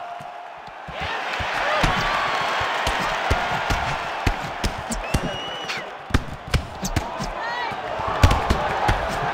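A large crowd roars steadily in a big arena.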